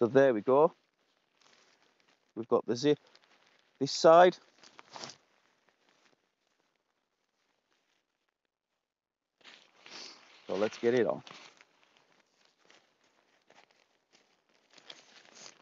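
A tarp rustles and crinkles as it is folded.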